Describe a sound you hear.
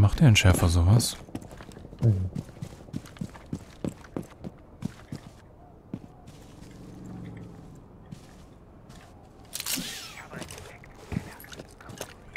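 Footsteps tread quickly over grass and stone.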